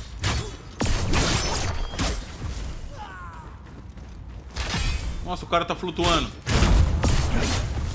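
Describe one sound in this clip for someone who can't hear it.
A low magical whoosh swells and crackles.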